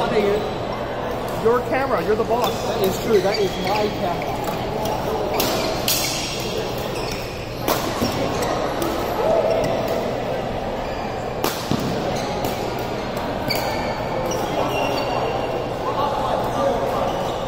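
Young men and women chatter and call out at a distance, in a large echoing hall.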